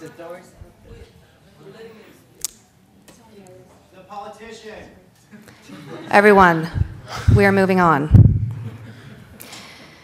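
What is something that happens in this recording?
A woman speaks through a microphone, at times loudly and with emphasis.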